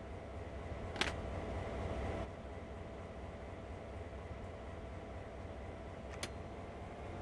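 A metal lever clicks into place.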